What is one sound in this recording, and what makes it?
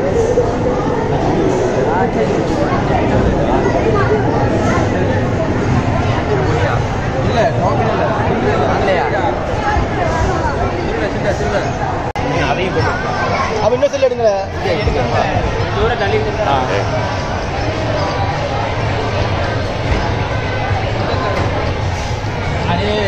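A crowd of young men chatters loudly all around, close by.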